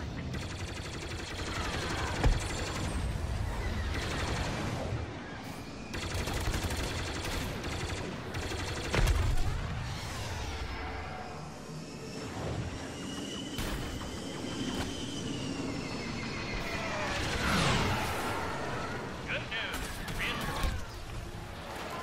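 Laser blasts fire in rapid bursts.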